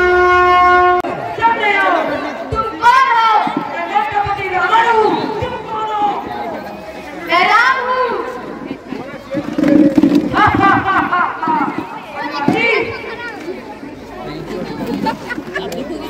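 Young children sing through a loudspeaker.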